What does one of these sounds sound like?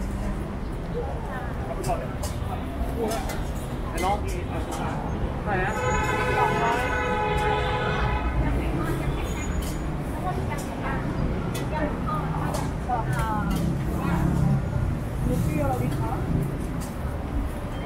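Women talk casually nearby.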